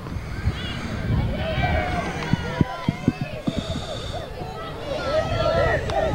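A crowd of young spectators cheers and shouts loudly.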